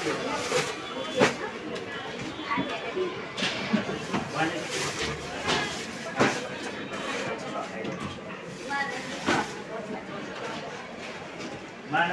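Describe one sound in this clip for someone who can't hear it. A plastic sack crinkles.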